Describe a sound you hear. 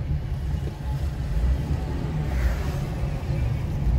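A car drives past nearby.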